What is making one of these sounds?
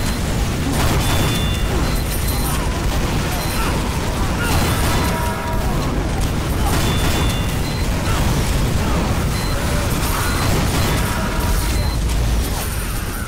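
A video game gun fires repeatedly.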